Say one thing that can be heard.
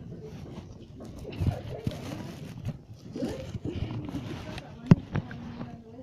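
Rustling and knocks sound as a phone is handled.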